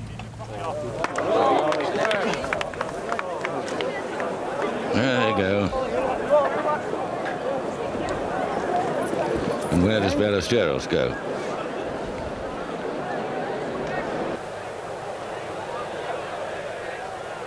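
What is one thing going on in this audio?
A large crowd cheers and applauds loudly outdoors.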